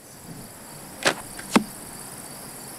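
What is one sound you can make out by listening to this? Arrows thud into a target one after another.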